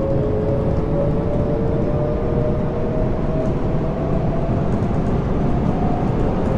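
A train's electric motor whines, its pitch slowly rising.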